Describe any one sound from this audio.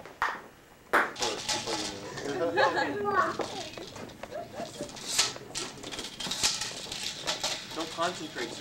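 A group of adults and children chatter and call out nearby outdoors.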